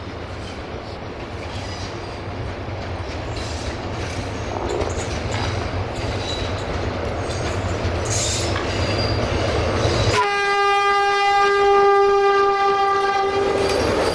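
A train approaches and rumbles louder and louder.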